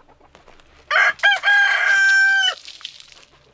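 A chicken squawks loudly.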